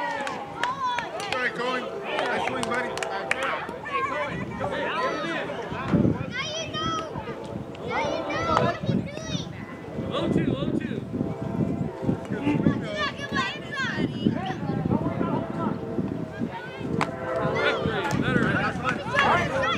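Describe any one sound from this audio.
Children shout and cheer nearby outdoors.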